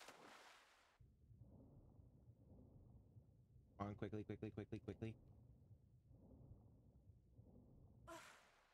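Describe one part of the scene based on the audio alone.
Water rumbles and bubbles in a low, muffled murmur.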